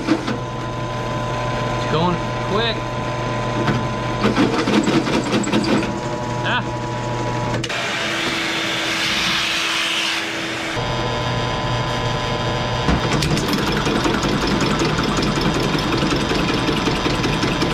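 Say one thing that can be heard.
Metal parts clink and scrape as a man works on a pipe.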